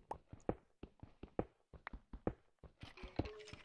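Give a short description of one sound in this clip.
A pickaxe taps and chips rapidly at stone.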